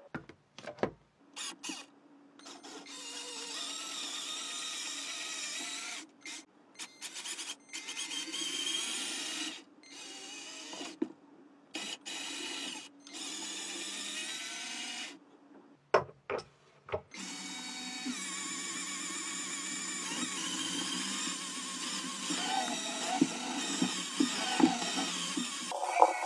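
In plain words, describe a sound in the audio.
A small electric motor whirs.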